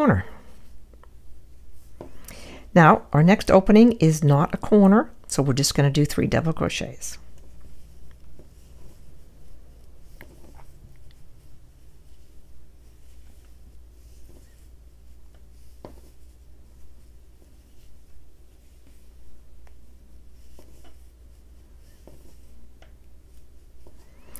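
A crochet hook softly rustles and scrapes through yarn.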